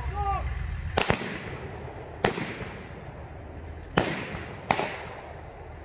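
Rifle shots crack loudly and echo outdoors.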